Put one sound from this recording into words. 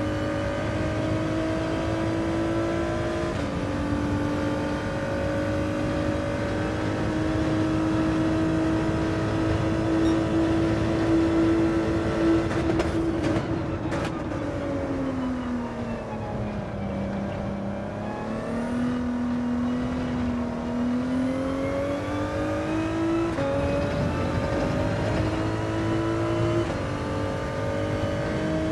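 A racing car engine drones loudly, rising and falling in pitch as it shifts gears and slows for corners.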